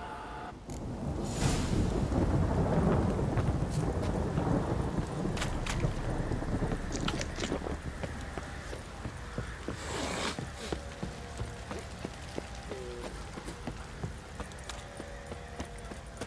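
Footsteps run quickly over dirt and wooden boards.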